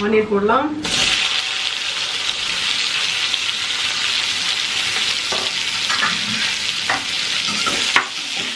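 Onions sizzle loudly in hot oil.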